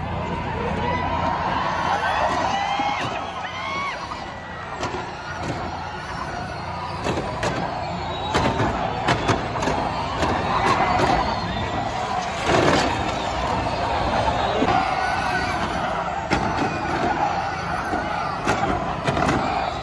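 Electric race cars whine past at speed.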